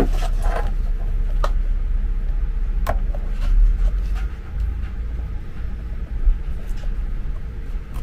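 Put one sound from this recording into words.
A small screwdriver scrapes and clicks against a plastic case.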